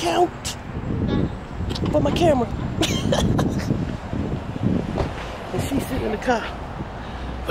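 A woman talks cheerfully into a close microphone outdoors.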